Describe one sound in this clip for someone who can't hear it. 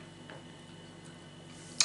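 A woman sips a hot drink from a cup.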